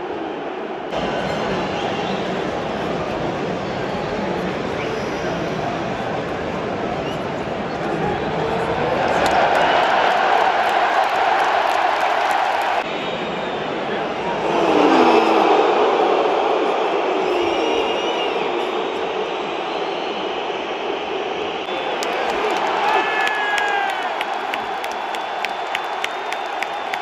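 A crowd whistles shrilly.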